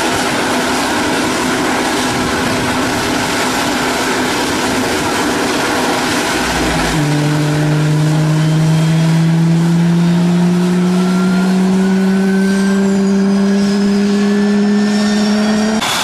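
A jet engine roars loudly nearby.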